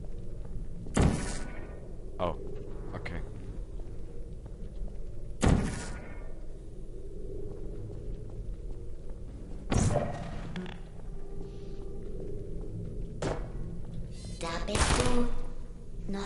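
A portal gun fires with a sharp burst.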